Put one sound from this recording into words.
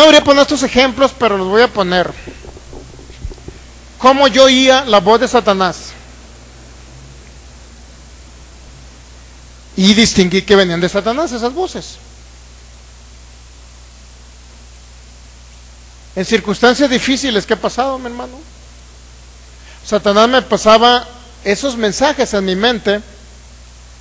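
A man speaks with animation into a microphone, heard through loudspeakers in an echoing hall, pausing between phrases.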